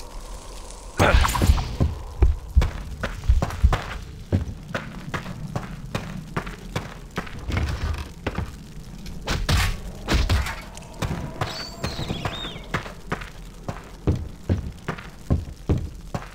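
Footsteps thud on wooden and stone floors.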